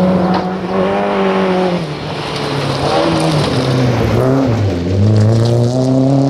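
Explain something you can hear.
Gravel sprays and rattles under a car's spinning tyres.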